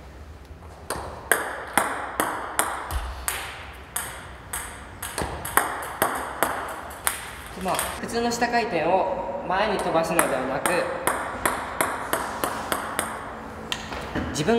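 A ping-pong ball clicks repeatedly against a paddle and table.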